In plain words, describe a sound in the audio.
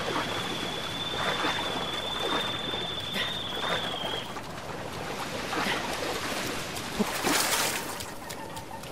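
Water splashes as a figure wades through the shallows.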